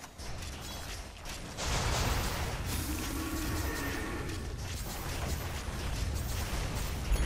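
Fantasy battle sounds of spells and blows crackle and clash.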